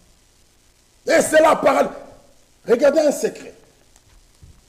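A man preaches loudly through a microphone in an echoing hall.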